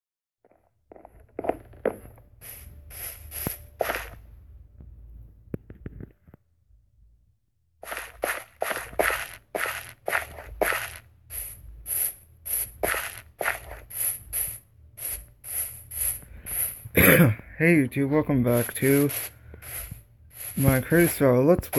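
Footsteps tread quickly and evenly over gravel and grass.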